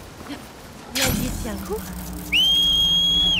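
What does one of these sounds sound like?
A sudden whoosh sounds as a glider opens.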